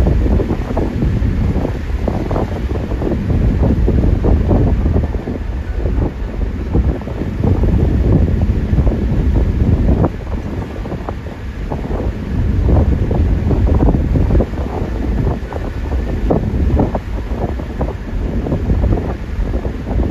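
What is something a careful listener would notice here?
Wind rumbles loudly against the car.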